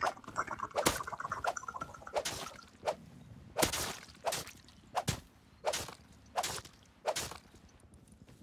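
A blade hacks repeatedly into flesh with wet, heavy thuds.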